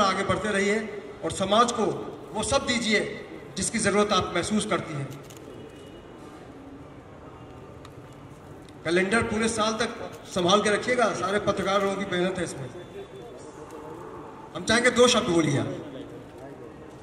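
A man speaks loudly through a loudspeaker, in bursts with pauses.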